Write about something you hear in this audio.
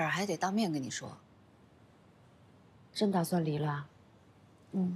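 A young woman speaks calmly and seriously, close by.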